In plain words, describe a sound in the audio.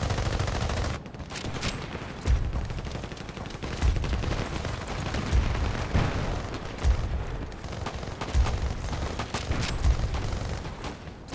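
Footsteps thud on hard ground.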